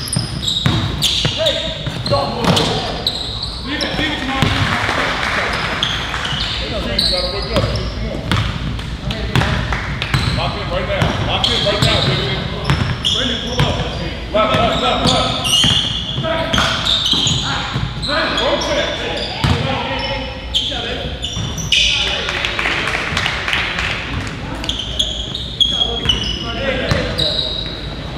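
Sneakers squeak sharply on a hard floor in a large echoing hall.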